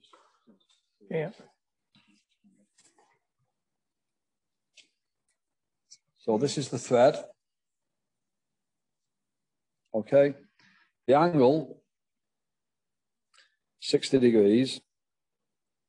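An older man speaks calmly in short bursts through an online call.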